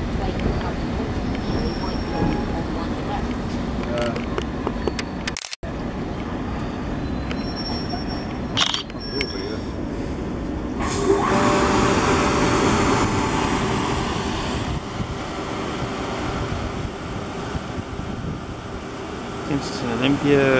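A train rumbles and clatters along the tracks, passing close by.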